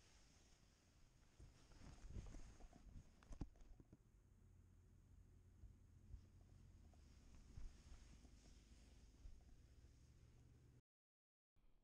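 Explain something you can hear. A paraglider wing flutters and rustles overhead.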